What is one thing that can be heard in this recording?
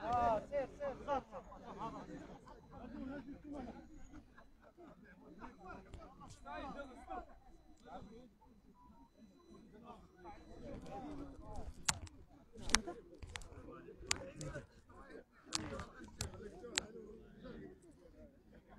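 A crowd of young people chatter and call out outdoors.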